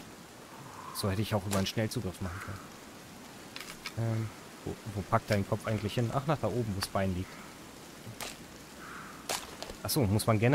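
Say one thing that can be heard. A young man talks casually and close into a microphone.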